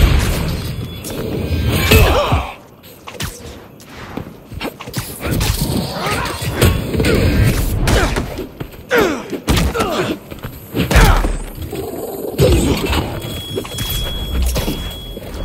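Heavy blows thud and crack in a fight.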